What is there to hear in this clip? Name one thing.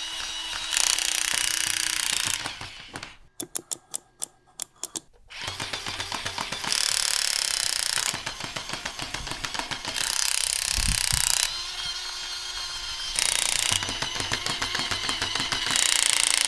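A toy's small electric motor whirs and buzzes.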